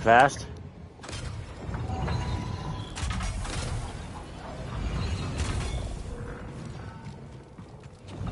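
Footsteps thud on a metal floor.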